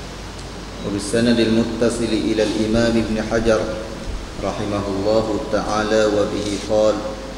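A man speaks calmly into a microphone, heard through a loudspeaker in an echoing room.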